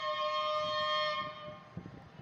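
A train horn blares from a distance.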